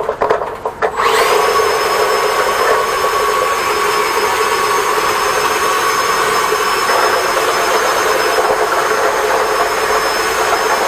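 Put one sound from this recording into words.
A vacuum cleaner starts up and runs with a loud, steady whine.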